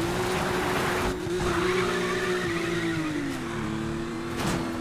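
Tyres skid and screech on a road.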